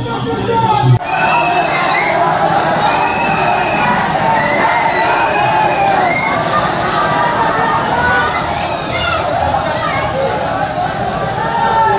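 A large crowd of men shouts and chants loudly outdoors in a street.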